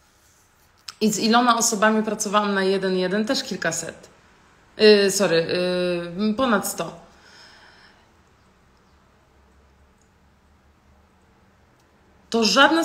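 A young woman speaks calmly and close to a microphone, pausing between phrases.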